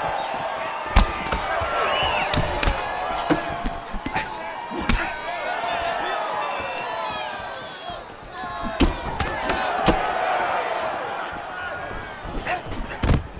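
Punches thud against bodies in quick blows.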